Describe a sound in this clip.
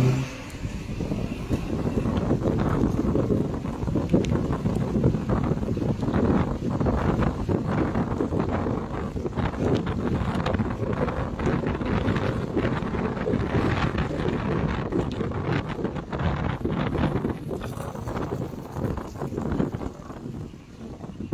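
Wind rushes and buffets past a moving car.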